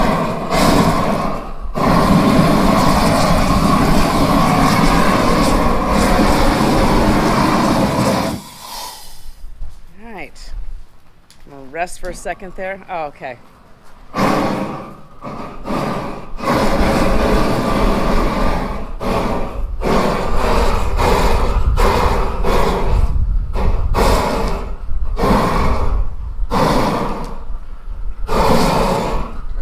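A gas burner roars loudly.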